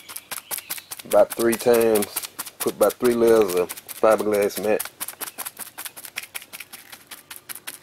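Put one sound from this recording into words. A stiff brush dabs rapidly against a rough surface.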